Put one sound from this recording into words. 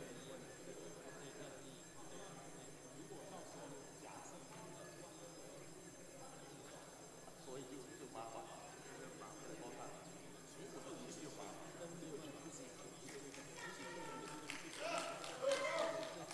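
Many people murmur and talk at once in a large echoing hall.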